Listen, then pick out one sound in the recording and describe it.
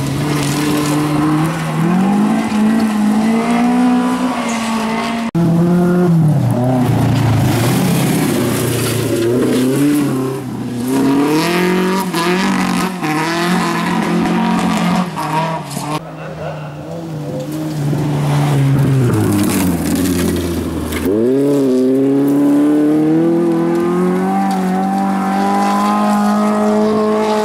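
A rally car engine roars and revs hard, rising and falling in pitch.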